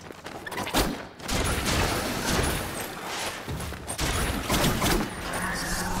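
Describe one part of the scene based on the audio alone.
A blade swishes through the air in quick slashes.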